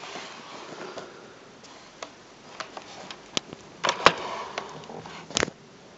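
Plastic clicks and knocks as a laptop is handled up close.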